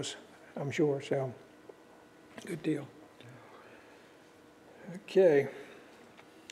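An elderly man speaks calmly into a microphone, in short bursts.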